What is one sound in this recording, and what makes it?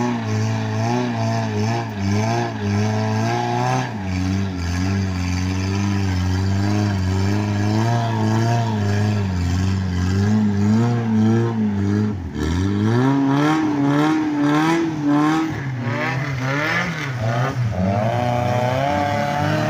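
An engine roars and revs.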